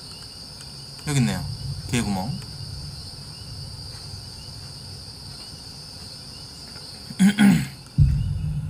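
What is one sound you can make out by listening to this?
A young man exclaims loudly into a nearby microphone.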